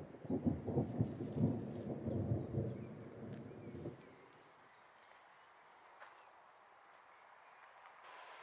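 Wind rustles through the leaves of nearby trees.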